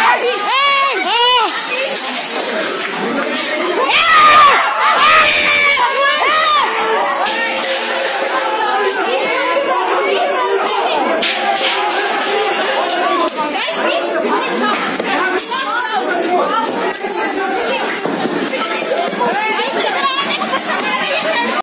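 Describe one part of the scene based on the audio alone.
Several men shout and yell excitedly close by.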